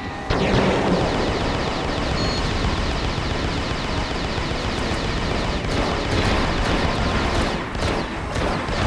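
Rapid laser gunfire rattles on and on.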